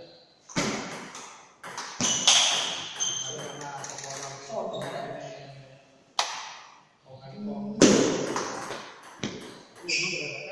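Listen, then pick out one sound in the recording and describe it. A table tennis ball clacks sharply against paddles and the table, echoing in a large hall.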